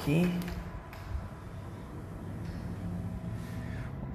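A glass sliding door rolls open.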